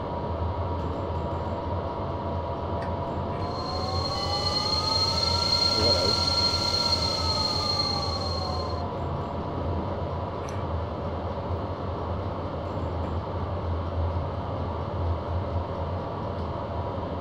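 An electric train's motors hum and whine steadily as it rolls along the track.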